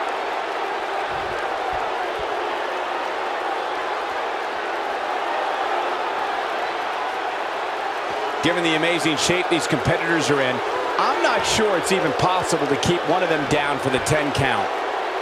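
A large crowd cheers and roars steadily, echoing in a big arena.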